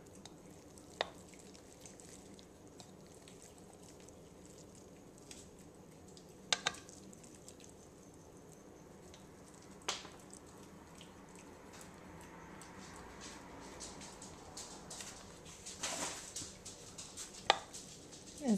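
A knife knocks against a plastic bowl now and then.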